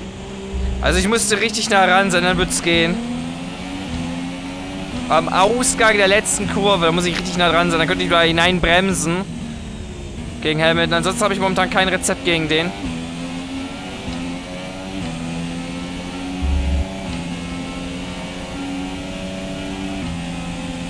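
A racing car engine roars loudly, climbing in pitch through quick gear changes.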